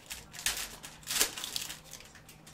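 A foil wrapper crinkles as trading cards are handled.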